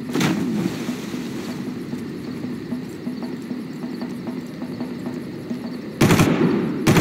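Footsteps clank steadily on a metal walkway.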